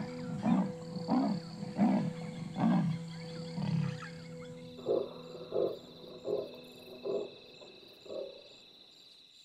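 A leopard gives a rhythmic, rasping sawing call.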